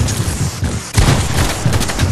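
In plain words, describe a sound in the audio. A loud single rifle shot cracks.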